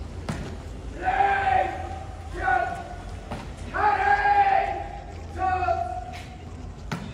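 A man shouts long, drawn-out commands that echo across an open courtyard.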